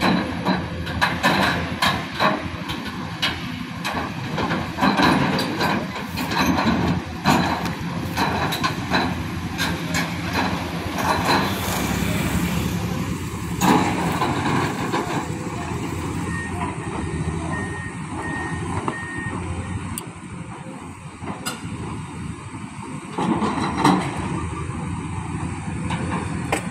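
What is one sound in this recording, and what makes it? Excavator engines rumble steadily in the distance.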